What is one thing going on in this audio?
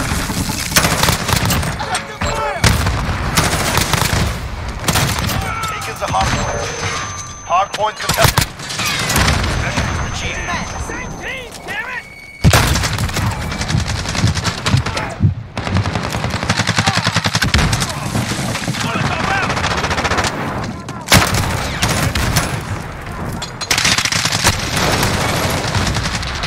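Guns fire in rapid bursts of sharp shots.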